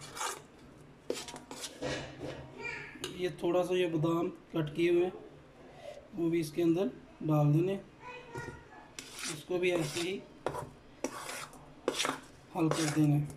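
A spoon stirs thick batter and scrapes against a metal bowl.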